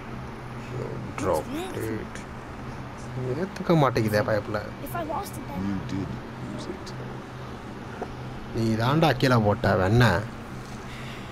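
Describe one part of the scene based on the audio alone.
A boy speaks softly and earnestly.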